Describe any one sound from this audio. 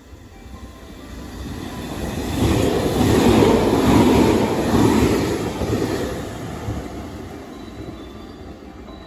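A train rushes past close by with a loud roar that rises and then fades.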